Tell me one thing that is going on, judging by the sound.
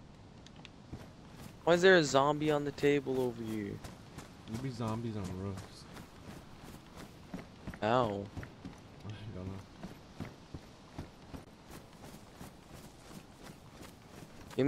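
Footsteps tread steadily over grass and wooden boards.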